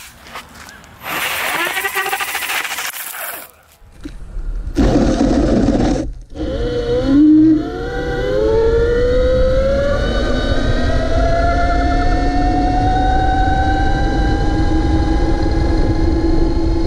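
A belt-driven electric scooter motor whines, rising in pitch as it speeds up.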